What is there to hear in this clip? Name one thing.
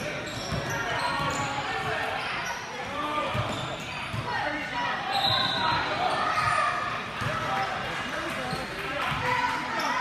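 A crowd of spectators chatters and calls out in a large echoing gym.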